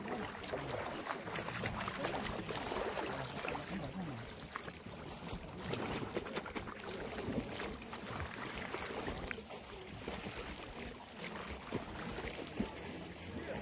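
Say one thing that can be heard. Shallow water splashes softly as someone moves in it.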